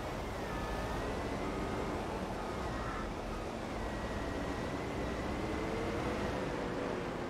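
A heavy diesel engine rumbles and whines steadily.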